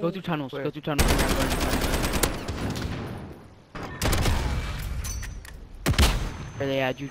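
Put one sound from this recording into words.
Gunshots bang loudly and echo.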